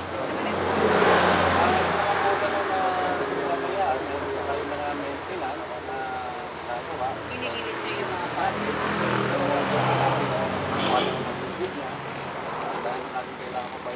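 A young woman speaks calmly at a short distance.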